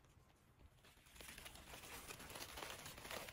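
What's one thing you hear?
A gloved hand rustles through dry leaves.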